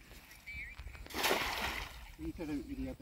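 A net splashes onto the water.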